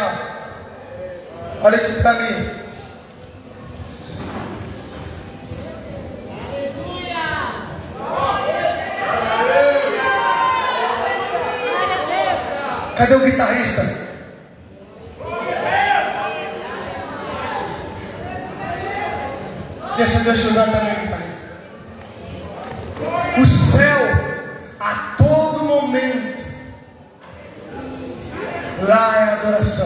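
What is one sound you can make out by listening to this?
A man speaks with animation into a microphone over loudspeakers, echoing in a large open space.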